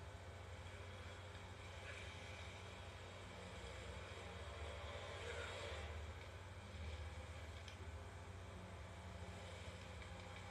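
A video game's sounds play quietly through a television speaker.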